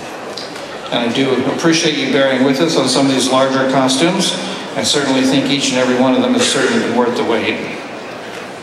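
A man speaks theatrically into a microphone over loudspeakers in a large hall.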